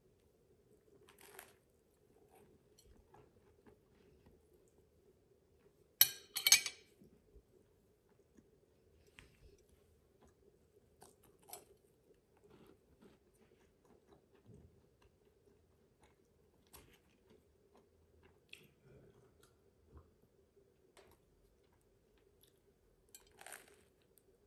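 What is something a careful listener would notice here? Crusty toast rustles and crackles as a hand picks it up and sets it down on a plate.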